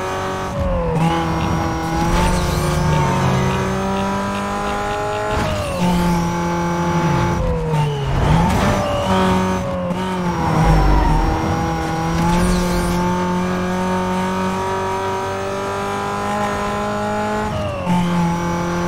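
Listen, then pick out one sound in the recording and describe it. A sports car engine drops in pitch with each upshift.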